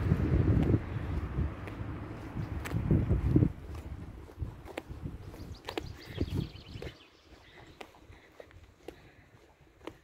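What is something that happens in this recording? Footsteps tap on pavement at a walking pace.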